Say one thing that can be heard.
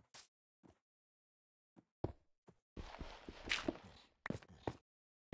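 Stone blocks thud softly as they are placed one after another.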